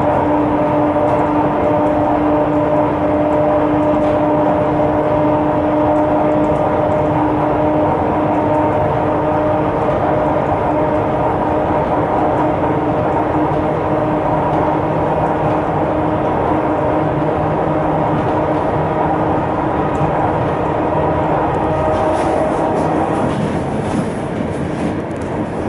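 A train carriage rumbles and hums steadily as it rolls along the tracks.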